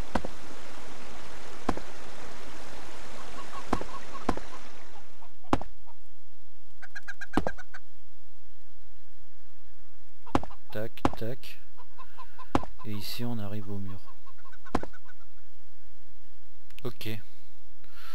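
Stone blocks thud into place with short clicks, one after another.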